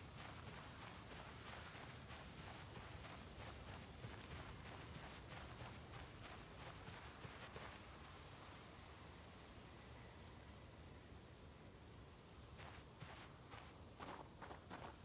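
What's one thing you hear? Footsteps pad softly across grass.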